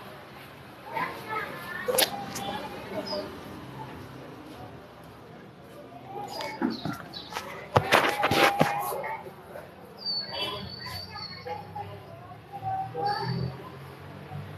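A young man talks up close to a phone microphone.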